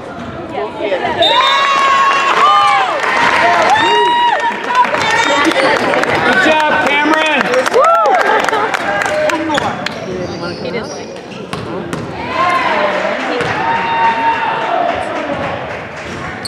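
Spectators shout and cheer in a large echoing gym.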